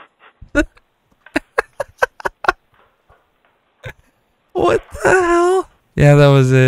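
A man laughs wildly into a close microphone.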